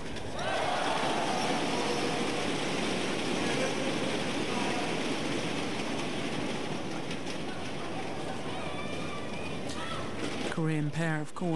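A large crowd cheers and claps in an echoing hall.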